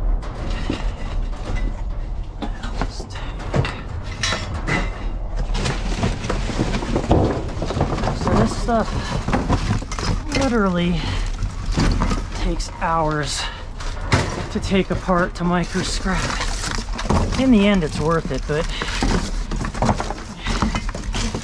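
Cardboard boxes rustle and scrape as they are shifted about.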